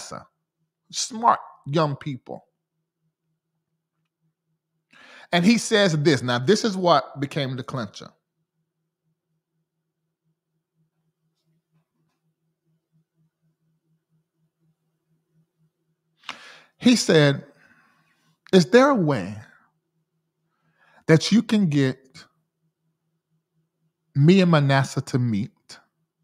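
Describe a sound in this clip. A man speaks calmly and closely into a microphone, in short bursts with long pauses.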